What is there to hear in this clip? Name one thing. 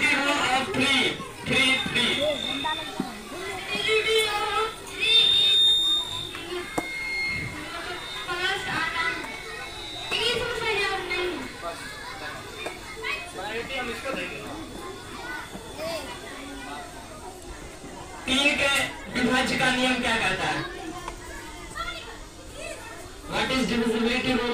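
A young man speaks loudly into a microphone over a loudspeaker, outdoors.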